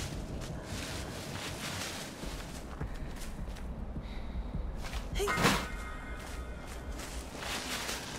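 Tall grass rustles as someone pushes through it.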